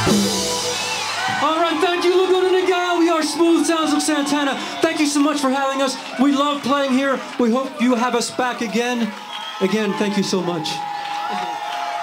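A man sings through a microphone.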